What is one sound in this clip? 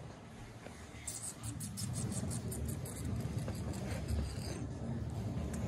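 A hand strokes a cat's fur with soft rustling.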